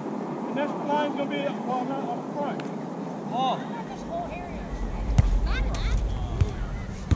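Young men and women call out to each other across an open field.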